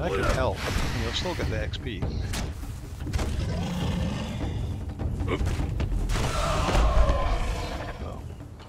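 A sword hacks into a large beast with heavy, wet thuds.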